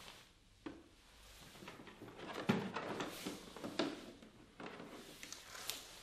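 Rubber hoses rustle and knock against a plastic case.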